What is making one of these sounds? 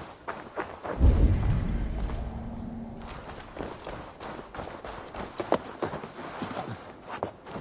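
Hands and feet scrape and thump while climbing up wooden planks.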